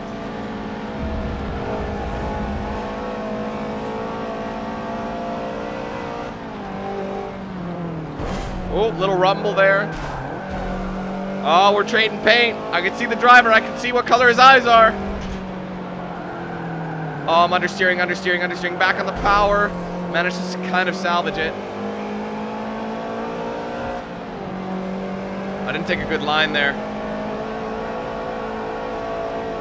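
A car engine drones steadily, its pitch rising and dropping with gear changes.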